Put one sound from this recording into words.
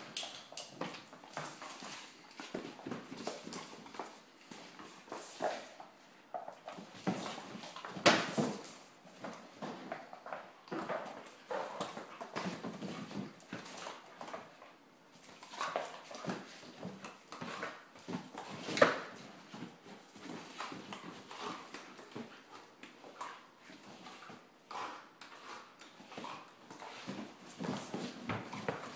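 Two dogs growl and snarl as they play-fight.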